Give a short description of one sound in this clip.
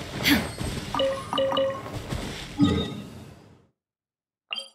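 Magical game sound effects shimmer and chime.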